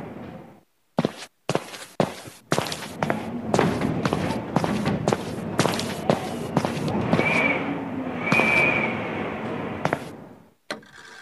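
Footsteps thud on stone stairs.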